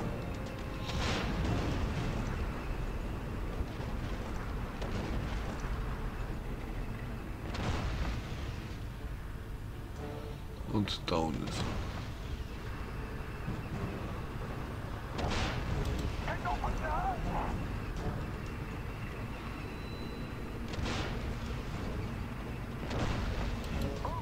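Tank guns fire with loud booming blasts.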